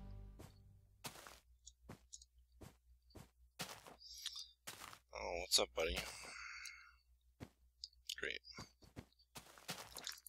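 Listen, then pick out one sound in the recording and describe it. Footsteps crunch steadily on snow and grass.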